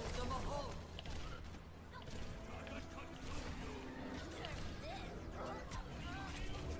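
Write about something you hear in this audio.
Game effects whoosh and zap.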